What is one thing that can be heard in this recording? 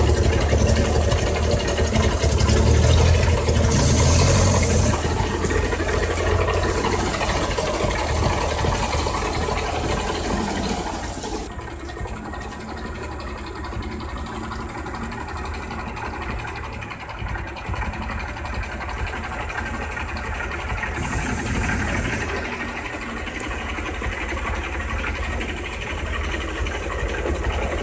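A truck engine rumbles and labours loudly nearby.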